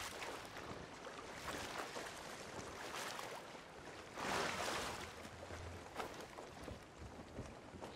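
Waves slosh against a wooden ship's hull.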